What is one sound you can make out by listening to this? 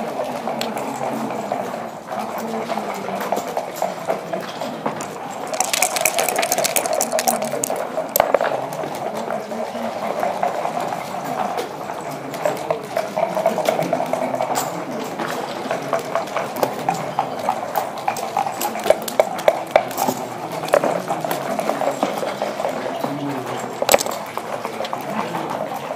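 Checkers click as they are moved across a wooden board.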